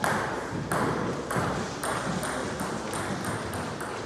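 A table tennis ball clicks back and forth between paddles and the table in an echoing hall.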